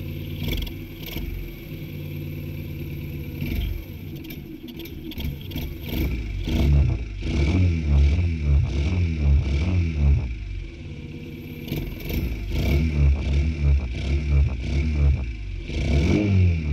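A small motorcycle engine idles close by.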